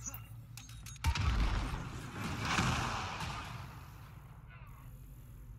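Gunfire blasts from a game and rumbles away.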